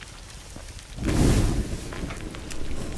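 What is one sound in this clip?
Flames whoosh up as cloth catches fire.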